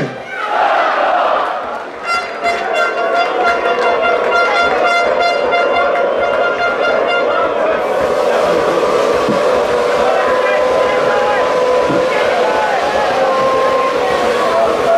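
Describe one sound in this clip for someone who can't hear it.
A crowd of men chatters and shouts close by, outdoors.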